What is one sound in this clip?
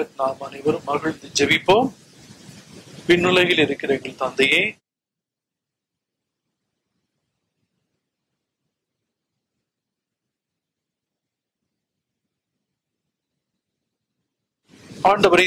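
An elderly man speaks slowly and solemnly into a microphone, with long pauses.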